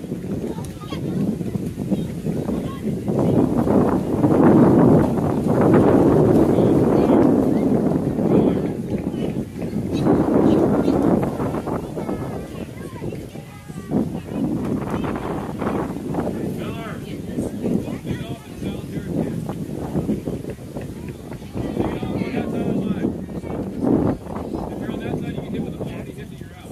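Young players call out across an open field.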